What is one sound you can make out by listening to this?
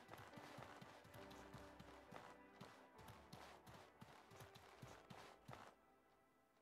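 Footsteps patter softly over grass.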